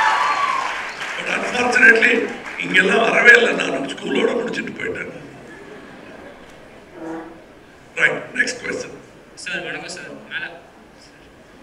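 A middle-aged man speaks with animation into a microphone, heard through loudspeakers.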